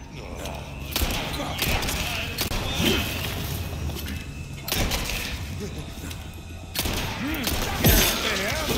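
Heavy blows thud and crash.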